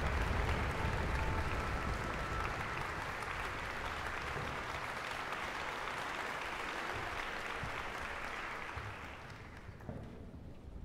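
An audience applauds loudly in a large echoing hall, and the applause dies away.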